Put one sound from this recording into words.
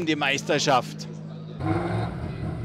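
A racing car speeds past.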